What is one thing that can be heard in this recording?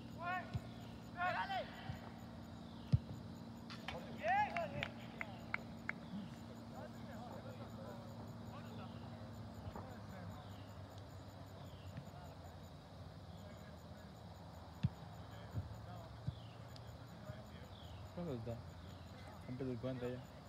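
Young players shout to each other across an open field in the distance.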